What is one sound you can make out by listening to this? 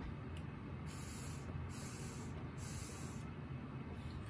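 Water bubbles in a glass pipe.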